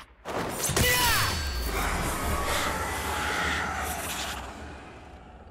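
A sword swooshes with a magical whoosh.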